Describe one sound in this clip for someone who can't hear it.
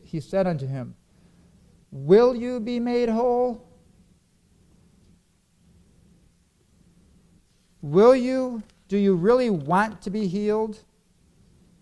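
A man speaks slowly and earnestly through a microphone, with long pauses.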